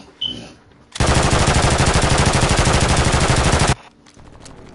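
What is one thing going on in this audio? Gunfire rattles loudly in a rapid burst.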